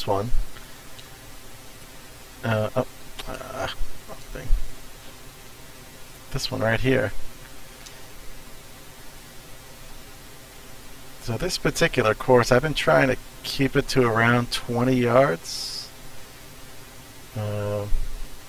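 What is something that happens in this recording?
A man talks calmly and casually into a close microphone, in short bursts with pauses.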